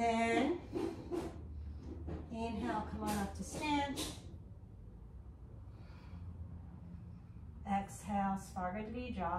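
An older woman speaks calmly, as if guiding an exercise, close by.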